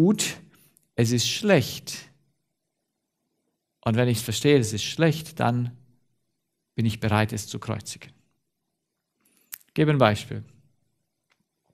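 A middle-aged man speaks with animation through a headset microphone, in pauses.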